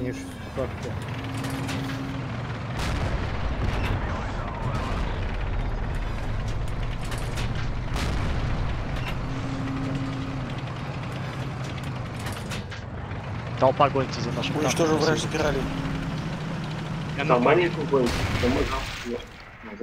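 A tank engine rumbles low and steady.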